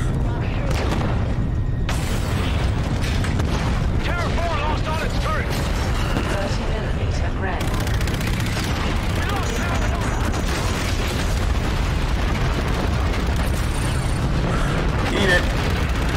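A deep engine rumbles steadily.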